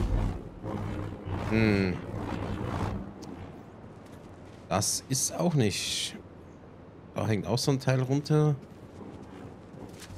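A glowing energy blade hums and swooshes through the air.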